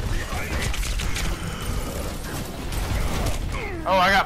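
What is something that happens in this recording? Rapid gunfire crackles and booms.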